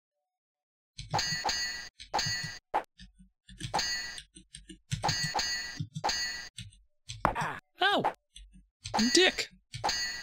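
Swords clash repeatedly in a video game.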